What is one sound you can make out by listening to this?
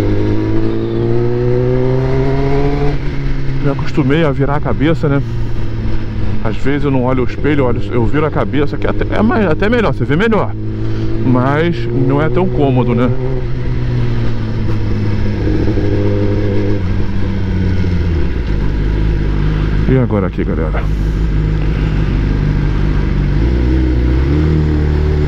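A motorcycle engine hums and revs up and down steadily.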